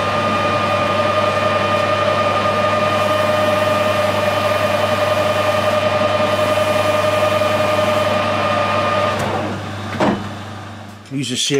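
A lathe motor hums steadily and then winds down.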